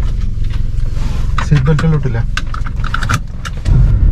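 A seatbelt buckle clicks shut.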